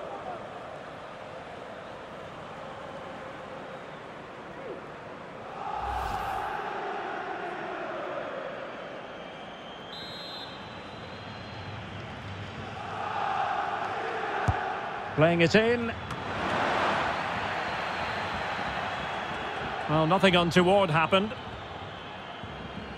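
A large stadium crowd roars and swells in waves.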